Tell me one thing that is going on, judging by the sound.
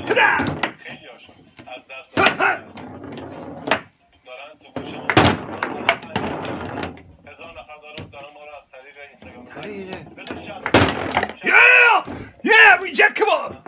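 Plastic foosball figures knock against a ball with sharp clacks.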